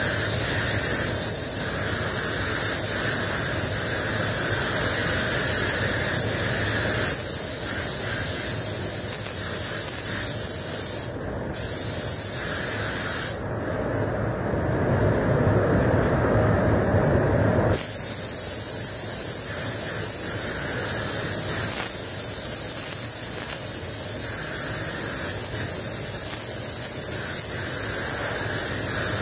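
A spray gun hisses steadily.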